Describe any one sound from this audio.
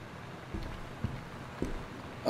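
A light switch clicks.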